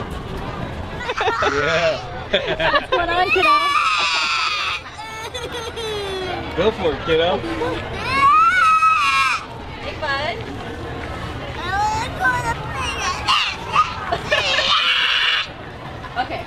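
A young boy cries and wails loudly nearby.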